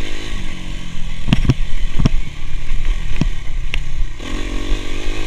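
A dirt bike engine roars and revs steadily.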